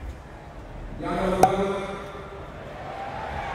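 A young man raps loudly into a microphone.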